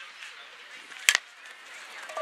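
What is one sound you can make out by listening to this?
A softball bat cracks against a ball.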